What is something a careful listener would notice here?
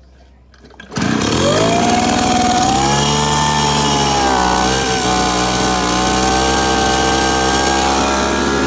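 A small two-stroke engine starts and runs loudly at a steady idle.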